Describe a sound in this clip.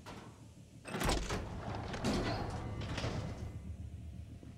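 A metal panel swings open with a clank.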